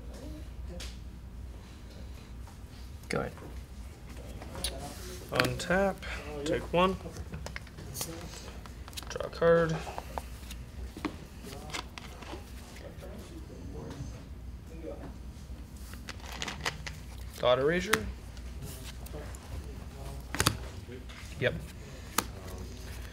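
Playing cards tap and slide on a table mat.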